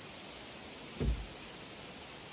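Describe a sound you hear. A heavy thump sounds on a wooden deck.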